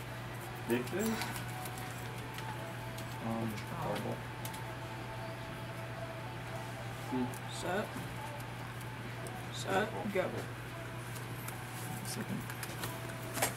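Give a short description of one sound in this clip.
Playing cards are shuffled and slapped onto a mat.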